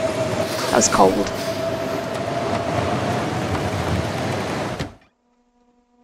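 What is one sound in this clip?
A strong wind howls and blows snow outdoors.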